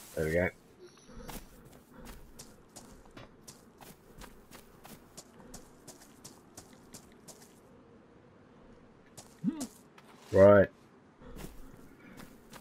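Footsteps crunch steadily over grass and ground.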